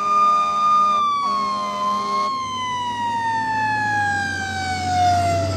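A fire engine's siren wails loudly and slowly drops in pitch.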